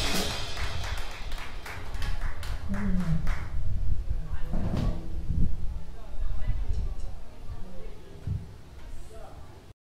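A drummer taps on cymbals.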